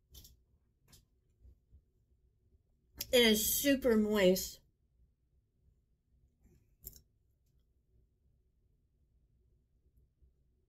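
A middle-aged woman chews food with her mouth closed.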